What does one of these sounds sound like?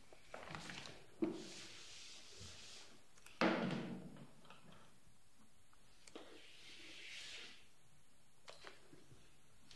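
Chalk scrapes and taps on a blackboard.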